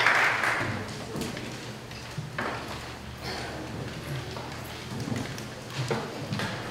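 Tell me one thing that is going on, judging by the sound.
A woman speaks through a microphone in a large echoing hall.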